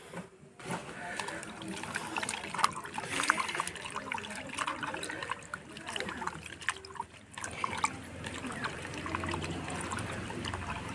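Hands squish and rub wet leaves in water.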